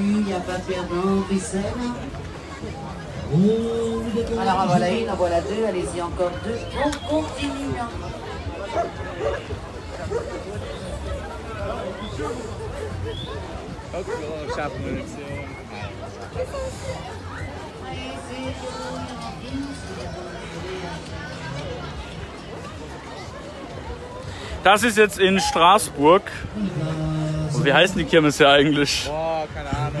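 A crowd of men and women chatters and murmurs nearby outdoors.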